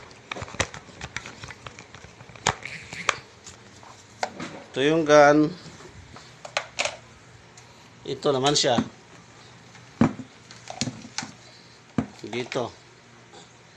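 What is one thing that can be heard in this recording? Plastic power tools knock and clatter as hands move them about.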